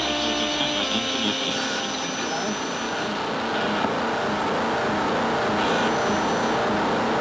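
Electronic music with droning synthesizer tones plays steadily in a reverberant hall.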